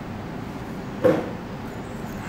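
A stone ball is set down with a light click on a hard surface.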